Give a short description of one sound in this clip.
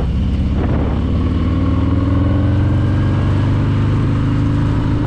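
A motorcycle engine revs up as it changes speed.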